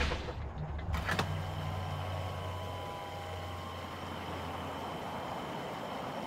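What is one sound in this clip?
A truck's diesel engine idles.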